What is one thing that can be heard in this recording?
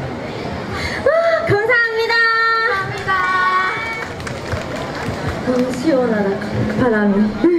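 Young women speak brightly into microphones through loudspeakers.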